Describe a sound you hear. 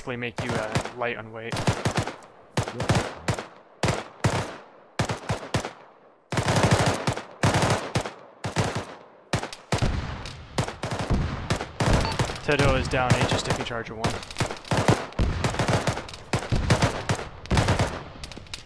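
Rifle shots crack repeatedly, close by.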